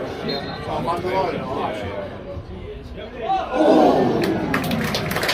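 A crowd of spectators chatters and calls out in an open-air ground.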